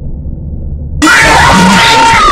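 A loud, harsh screech suddenly blares.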